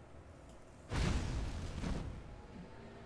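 A fire spell bursts with a crackling whoosh.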